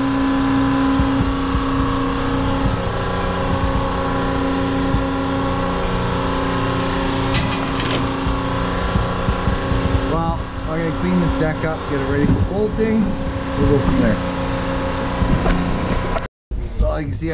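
A large machine hums steadily nearby.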